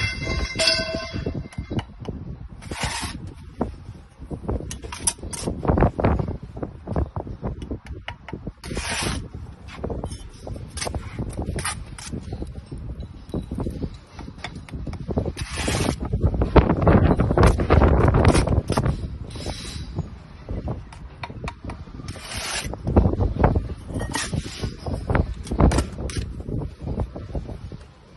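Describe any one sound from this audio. A steel trowel scrapes and taps on bricks and mortar.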